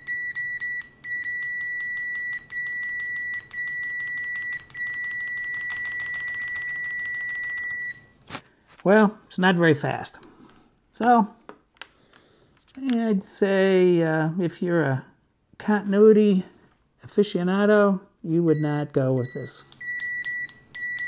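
A multimeter beeps with a steady high tone, cutting in and out.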